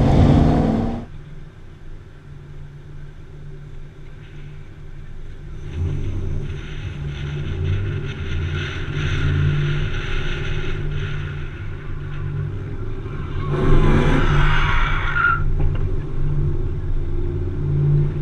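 A car engine hums as the car rolls along.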